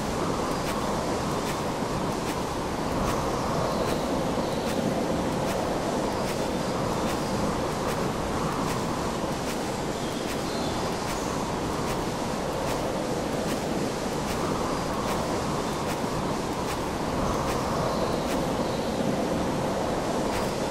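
Hands clank along a metal railing overhead.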